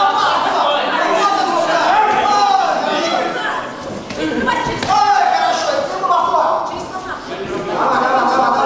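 A crowd of young spectators shouts and cheers in an echoing hall.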